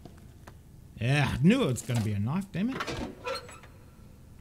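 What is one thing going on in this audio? A metal panel cover creaks and clanks open.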